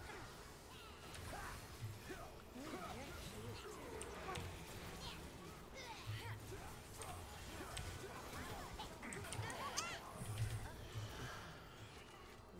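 Game spells whoosh and blast in a battle.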